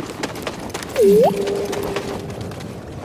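A small robot chirps and beeps.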